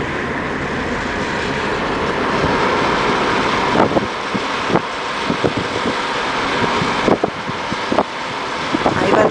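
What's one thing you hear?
Wind rushes and buffets past an open car window.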